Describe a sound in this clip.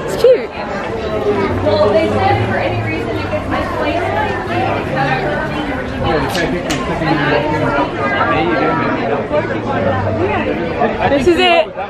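A crowd of men and women chatters all around, close by, outdoors.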